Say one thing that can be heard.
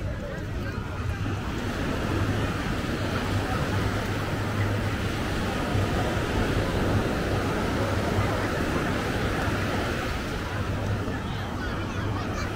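Waves wash steadily onto the shore.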